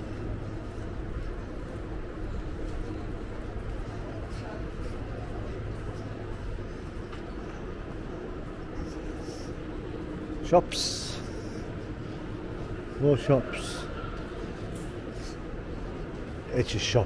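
Footsteps tap on pavement outdoors.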